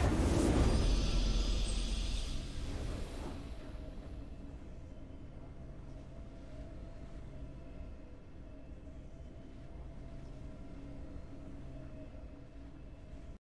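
A triumphant fanfare swells with a low rumble.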